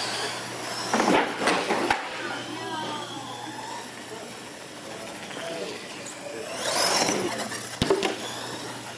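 Toy trucks thump as they land after jumps.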